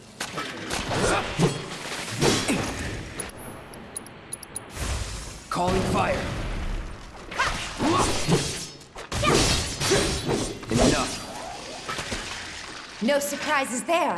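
A sword swishes and clangs in a fast fight.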